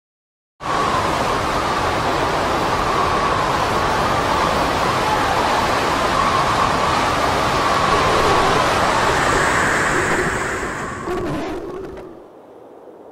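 Strong wind roars and howls outdoors in a storm.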